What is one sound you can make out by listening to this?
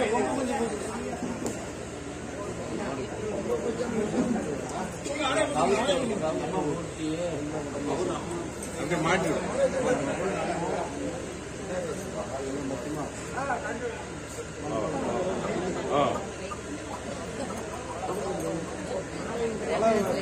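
A crowd of men talks and murmurs all around.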